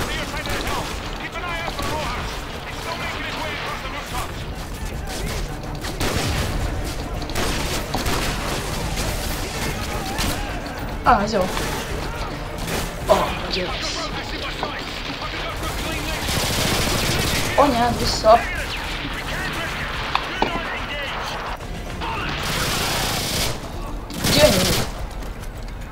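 Gunfire crackles in sharp bursts.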